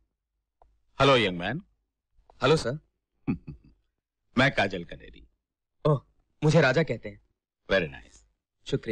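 A middle-aged man speaks calmly and warmly, close by.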